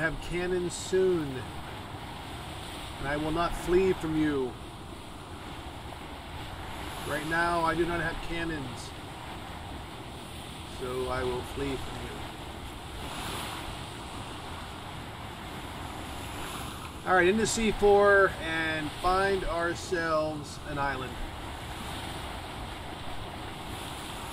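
Rough sea waves roll and wash steadily.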